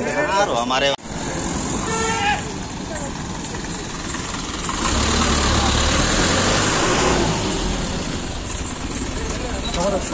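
A bus engine rumbles nearby.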